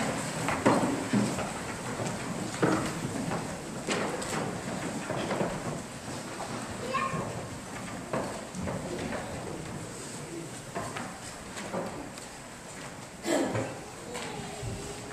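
A crowd shifts and rustles in their seats.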